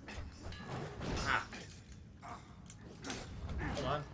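A fire burst whooshes and crackles.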